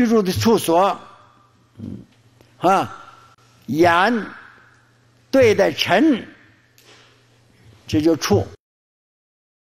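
An elderly man speaks calmly and slowly into a microphone, with short pauses.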